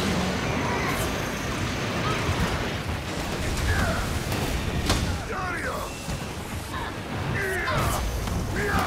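Heavy blows strike with loud thuds.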